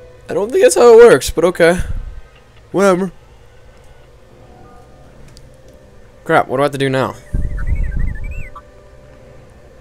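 A small robot beeps and whistles.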